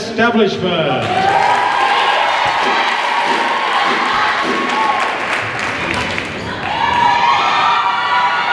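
A choir of young men and women sings.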